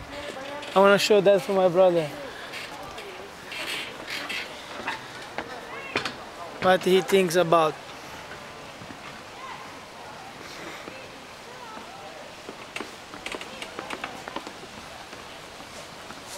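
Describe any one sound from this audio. Footsteps thud on wooden steps and boards.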